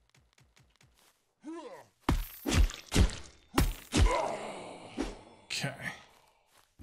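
Swords clash and thud in a fight.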